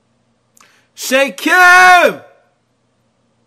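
A young man lets out a loud, drawn-out wailing cry.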